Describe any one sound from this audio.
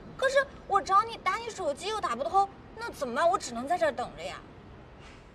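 A young woman speaks pleadingly, close by.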